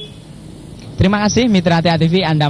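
A young man speaks into a handheld microphone, reporting steadily outdoors.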